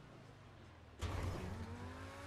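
A car lands hard with a heavy thud.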